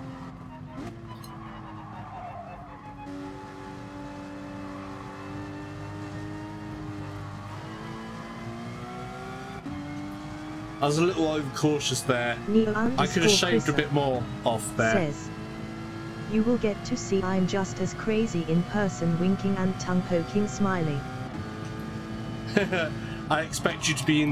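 A racing car engine hums and revs up through the gears.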